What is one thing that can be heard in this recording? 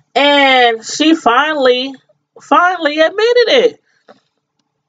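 A woman speaks expressively into a close microphone, with long drawn-out vowels.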